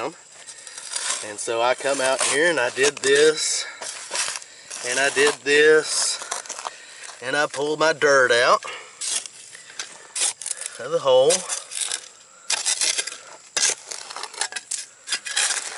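A shovel scrapes and crunches into dry soil.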